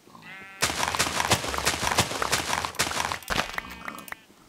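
Plants rustle and crunch as they are quickly broken in a video game.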